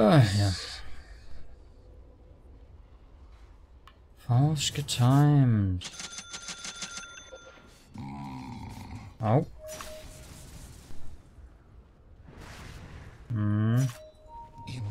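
A young man speaks with animation close to a microphone, in short bursts.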